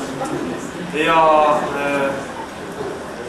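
A man speaks loudly with animation close by.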